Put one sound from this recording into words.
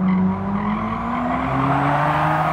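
A car engine revs up as the car accelerates.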